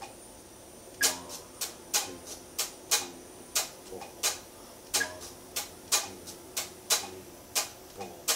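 An electric guitar is strummed in short, sharp strokes in a steady rhythm.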